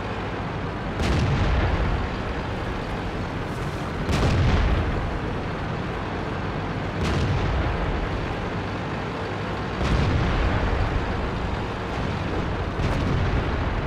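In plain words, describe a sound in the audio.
Cannon shots boom with a ringing echo.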